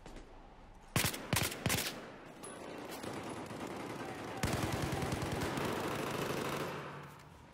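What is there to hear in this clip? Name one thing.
Gunshots crack in quick bursts nearby.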